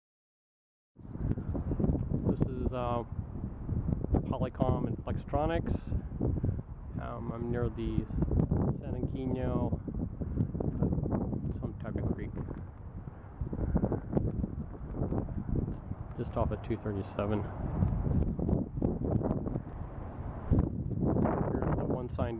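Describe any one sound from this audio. Wind blows across the microphone outdoors with a low rumble.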